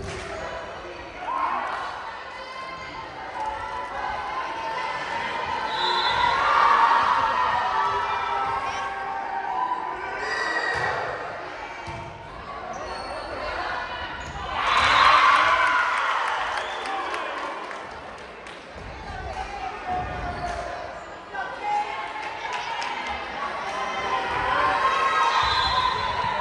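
A volleyball thumps off players' hands.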